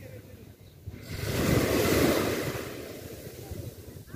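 Foaming surf rushes and hisses over the shore.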